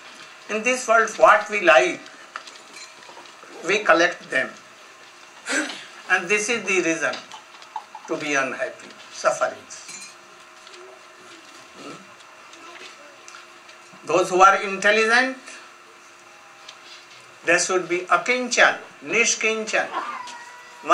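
An elderly man speaks calmly into a nearby microphone, in short phrases with pauses.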